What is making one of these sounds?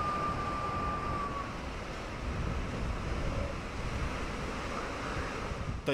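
Heavy waves crash and spray against a shore.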